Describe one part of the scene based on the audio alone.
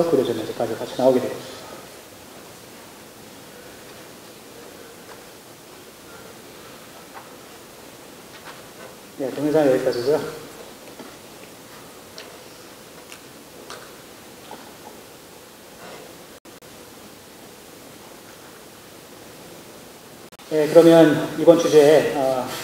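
A man speaks calmly into a microphone, heard through loudspeakers in a large hall.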